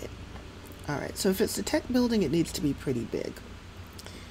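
A young woman speaks with animation through a close headset microphone.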